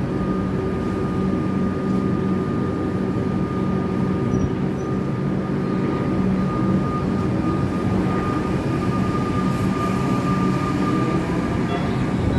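Train wheels squeal faintly on the rails.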